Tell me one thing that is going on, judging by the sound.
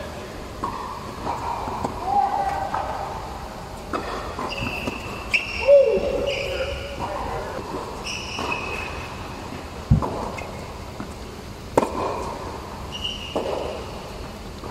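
Sneakers squeak sharply on a court.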